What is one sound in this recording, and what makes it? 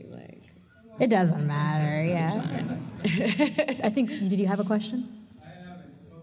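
A young woman laughs loudly into a microphone.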